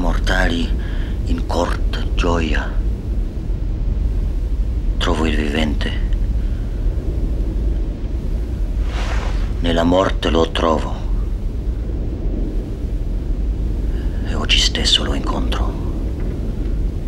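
A man speaks slowly and softly in short phrases, close by.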